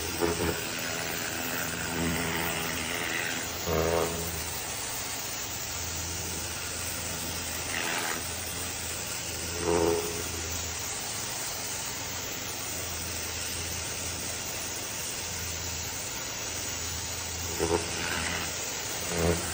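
A pressure washer sprays water onto metal with a steady loud hiss.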